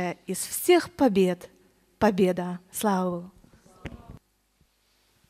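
A woman speaks with animation through a microphone in an echoing hall.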